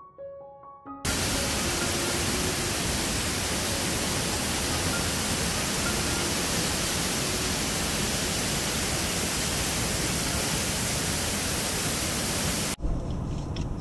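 A waterfall roars loudly close by.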